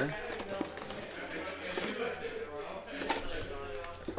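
A cardboard box lid scrapes open.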